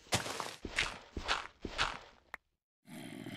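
Blocks of dirt crunch as they are dug out in quick blows.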